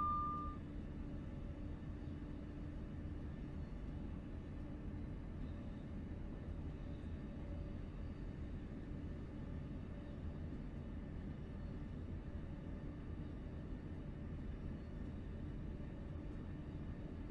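A train engine hums and the wheels rumble steadily on the rails.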